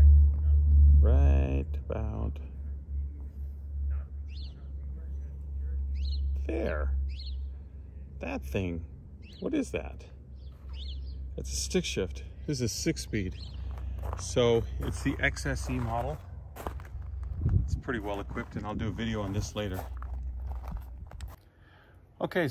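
A middle-aged man talks calmly close to the microphone.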